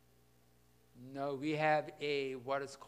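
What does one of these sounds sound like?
An elderly man speaks loudly through a microphone.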